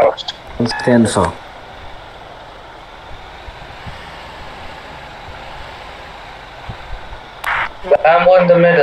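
A truck engine hums steadily as the truck drives slowly.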